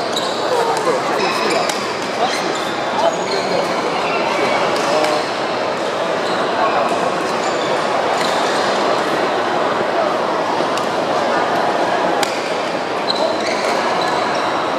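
Many shoes squeak sharply on a wooden floor in a large echoing hall.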